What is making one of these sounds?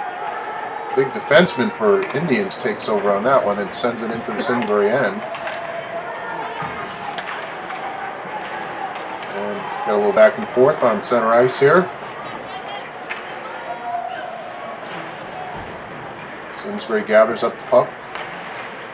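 A crowd of spectators shouts and cheers in an echoing rink.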